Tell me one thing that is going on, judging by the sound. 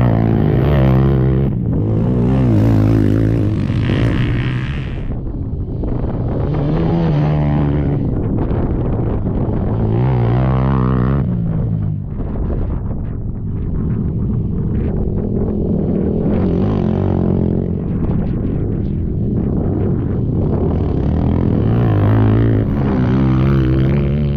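Quad bike engines roar and rev as they race past up close.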